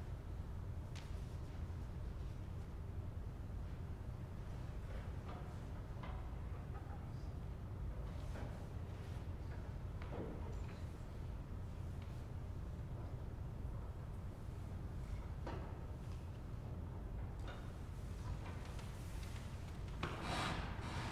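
Wooden organ stops knock and clunk as they are pulled and pushed.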